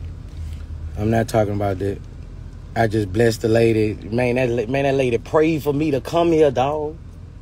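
A man speaks with animation close to a phone microphone.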